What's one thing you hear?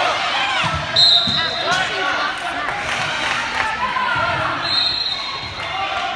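A referee's whistle blows in short, shrill blasts.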